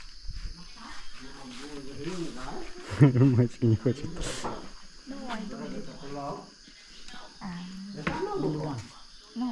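A young woman talks, close by.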